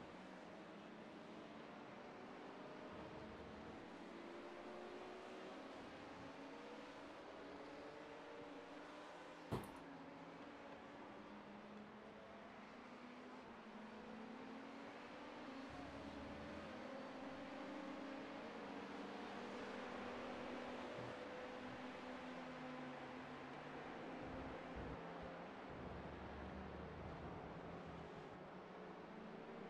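A racing car engine roars and shifts pitch as it speeds up and slows down.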